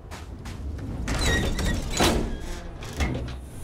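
A heavy metal hatch door opens with a mechanical hiss.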